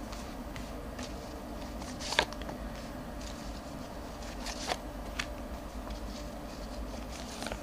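Playing cards shuffle and riffle softly.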